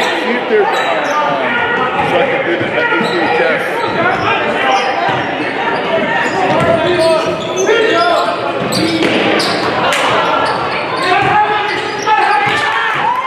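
A crowd cheers and chatters loudly in an echoing gym.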